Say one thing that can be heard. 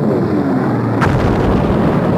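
A huge explosion bursts with a sharp crack.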